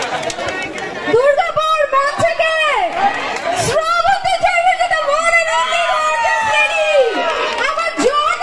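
A woman sings through a loudspeaker.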